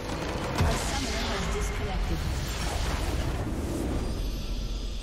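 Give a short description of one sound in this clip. A huge explosion booms and crumbles in a video game.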